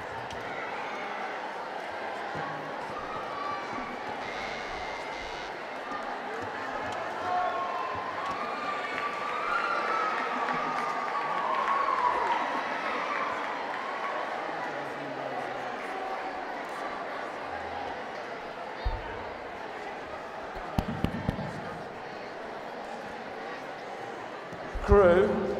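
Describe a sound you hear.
Children murmur softly in a large hall.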